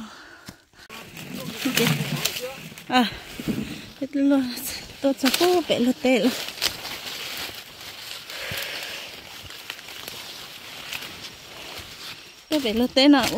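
Dry corn stalks rustle and crackle as people push through them.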